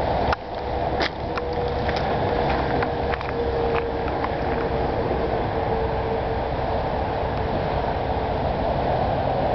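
A train horn sounds a long, steady tone in the distance.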